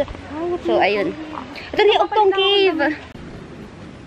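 A young woman speaks cheerfully and close to a microphone.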